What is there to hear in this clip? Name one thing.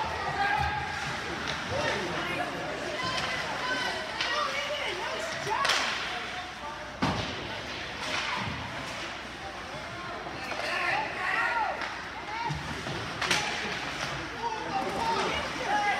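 Spectators chatter and call out in a large echoing arena.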